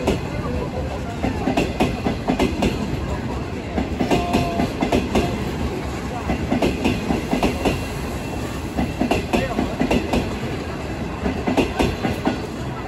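Train wheels clack and squeal over rail joints.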